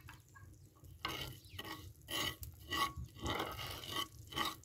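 A metal spatula scrapes against an iron pan.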